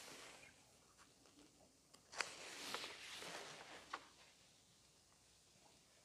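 An elderly man speaks quietly into a microphone.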